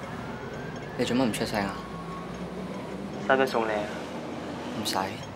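A young man speaks briefly nearby.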